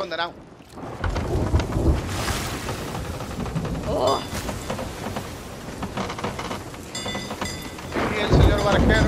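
Stormy sea waves crash and roar.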